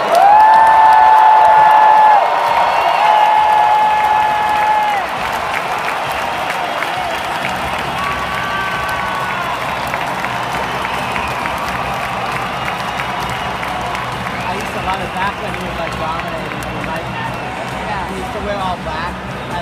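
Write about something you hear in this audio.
A large crowd cheers and applauds in a big echoing arena.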